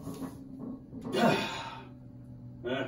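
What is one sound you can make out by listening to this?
A man grunts and exhales hard with effort.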